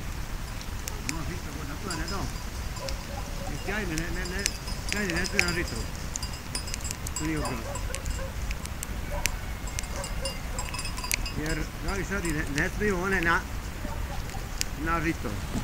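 Sheep bleat repeatedly with a wavering call.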